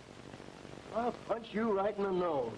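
A man speaks.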